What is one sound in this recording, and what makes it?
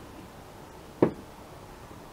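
A plastic bottle is set down on a table with a light knock.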